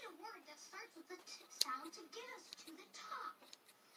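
Scissors snip through thread.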